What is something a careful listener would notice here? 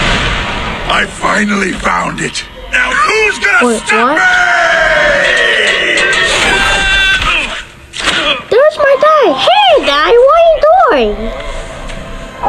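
A man shouts and talks in a high, silly puppet voice close by.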